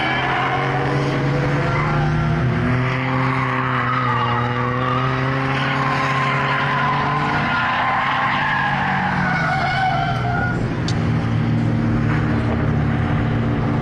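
Several motorcycle engines idle and rev loudly close by.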